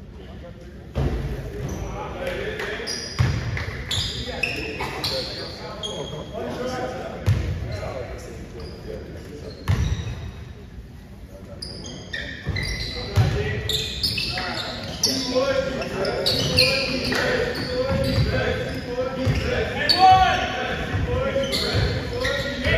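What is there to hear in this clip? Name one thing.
Spectators cheer and call out in an echoing gym.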